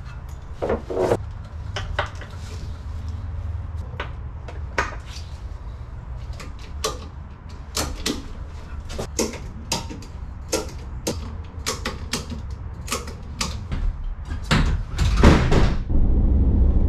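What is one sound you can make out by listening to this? A ratchet strap clicks and rattles as it is tightened.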